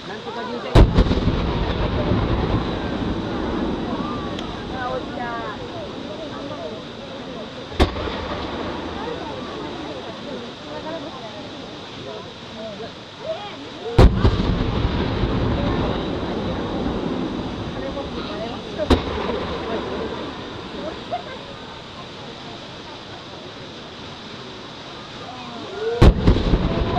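Fireworks explode with loud booms that rumble and echo outdoors.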